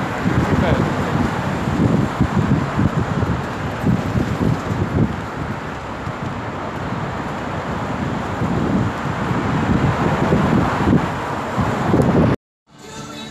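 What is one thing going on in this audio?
Traffic rumbles along a street nearby.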